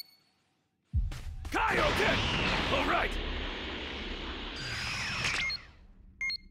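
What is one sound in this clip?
A loud whoosh rushes past.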